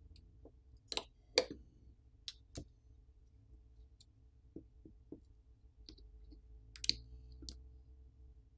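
Small plastic parts click and tap against each other close by.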